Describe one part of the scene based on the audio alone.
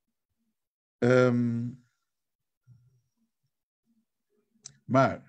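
A man speaks slowly and calmly over an online call.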